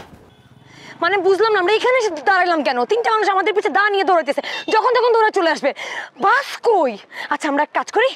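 A young woman speaks urgently and with animation, close by.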